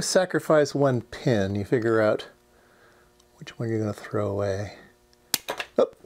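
Small side cutters snip through plastic pin strips with sharp clicks.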